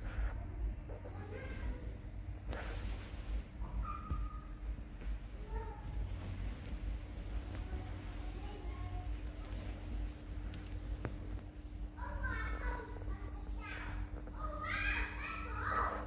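A baby otter squeaks and chirps in high, short calls.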